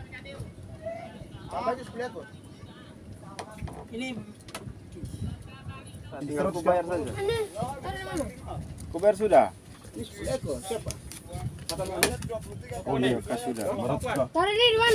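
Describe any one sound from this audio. Several men talk close by, outdoors.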